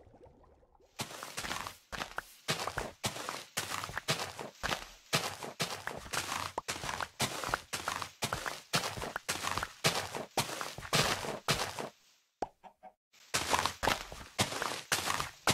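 A shovel digs into dirt in quick, repeated crunching scrapes.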